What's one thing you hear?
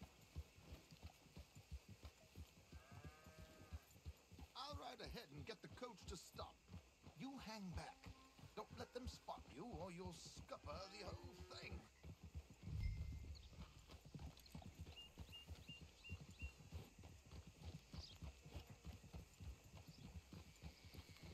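Horse hooves clop steadily on a dirt track.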